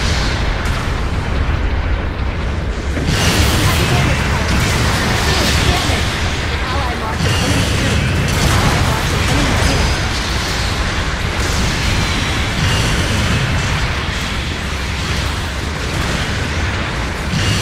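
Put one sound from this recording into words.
Heavy metal footsteps stomp.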